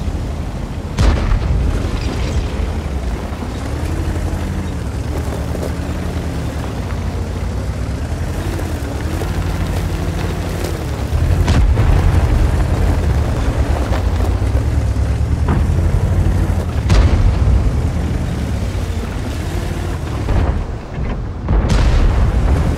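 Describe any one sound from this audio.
Tank guns fire with sharp booms.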